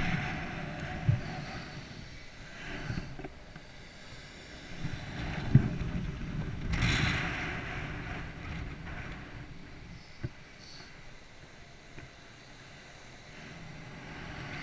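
Wind buffets the microphone outdoors at a height.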